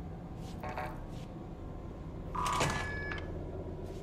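A heavy metal door swings open.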